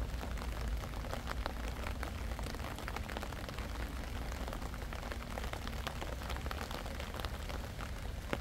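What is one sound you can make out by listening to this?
Rain patters steadily on a wet path and leaves.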